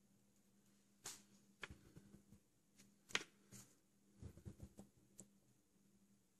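A model part knocks lightly against a table.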